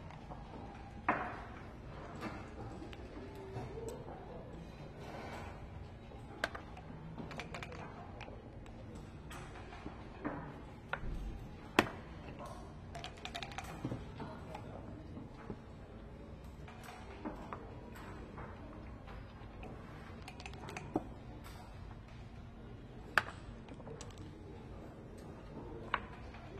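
Dice rattle in a cup and clatter onto a board.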